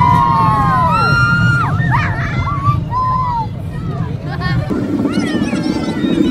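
Young children scream and shriek with glee close by.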